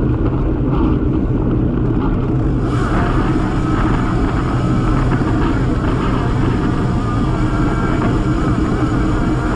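Strong wind rushes and buffets against the microphone outdoors.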